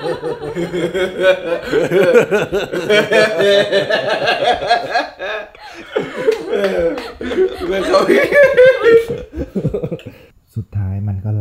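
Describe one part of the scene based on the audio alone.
A young man talks and laughs excitedly nearby.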